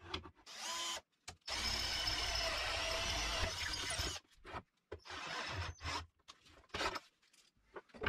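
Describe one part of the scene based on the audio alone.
A cordless drill whirs in short bursts, driving screws into wood.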